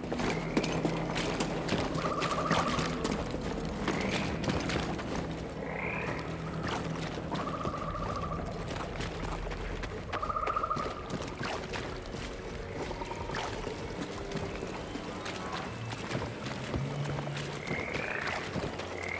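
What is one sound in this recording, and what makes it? Footsteps splash and thud on wet ground.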